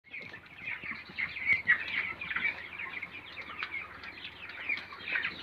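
Many young chickens chirp and peep constantly.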